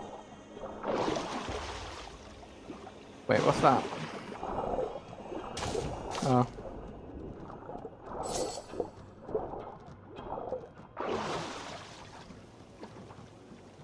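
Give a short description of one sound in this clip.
Water splashes loudly as a swimmer breaks the surface.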